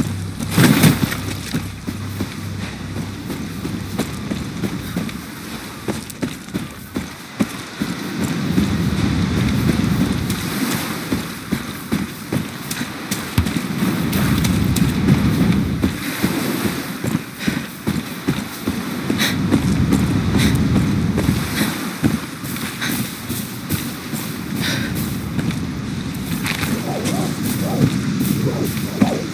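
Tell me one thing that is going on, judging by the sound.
Footsteps crunch steadily on sand and dry ground.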